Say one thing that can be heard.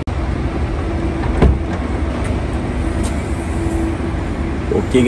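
A car's tailgate lifts open with a soft motor whir.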